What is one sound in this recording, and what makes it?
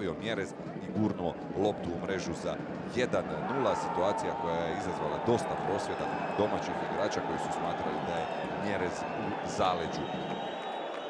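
A large stadium crowd roars and cheers loudly.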